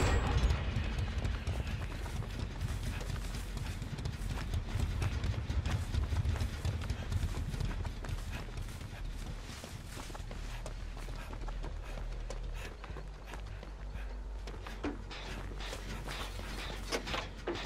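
Footsteps run over soft ground.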